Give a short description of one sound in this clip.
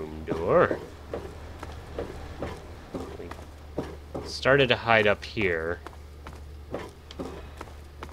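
Footsteps tap steadily on a hard metal floor.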